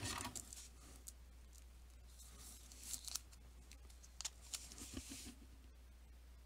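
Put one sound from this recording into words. A card slides into a stiff plastic holder with light scrapes and clicks.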